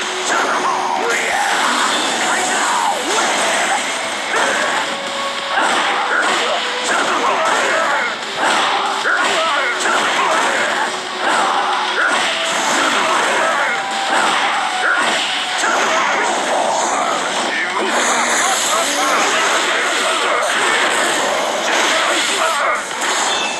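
Punches, kicks and energy blasts from a game fight land in rapid, dense bursts.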